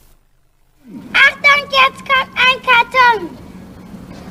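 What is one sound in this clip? A young child sings a short, bouncy tune close by.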